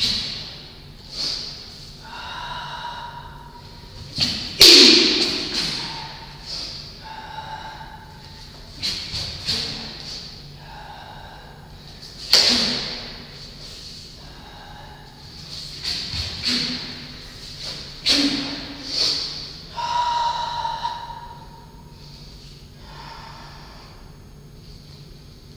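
A man speaks calmly, instructing, in an echoing room.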